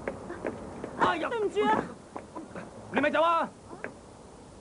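A young man shouts loudly.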